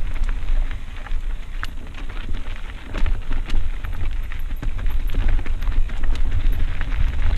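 Wind buffets the microphone.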